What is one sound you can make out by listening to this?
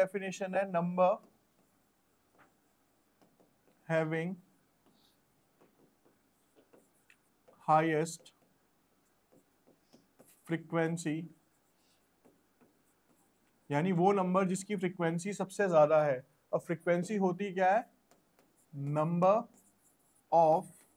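A marker squeaks and taps on a board.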